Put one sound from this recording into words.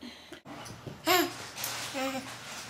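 A baby squeals loudly with excitement.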